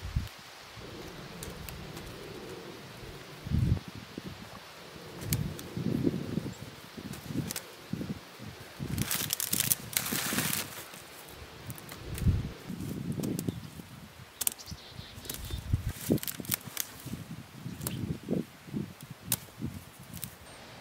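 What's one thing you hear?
Hands rustle and dig through dry soil and leaves.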